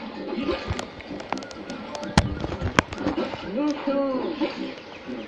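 Video game music plays from a television speaker.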